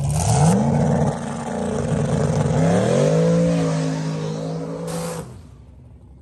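A powerful car engine revs loudly up close, rising in pitch twice before cutting off.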